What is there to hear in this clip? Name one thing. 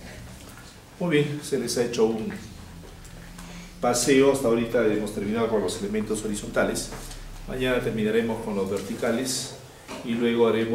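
A man lectures with animation nearby.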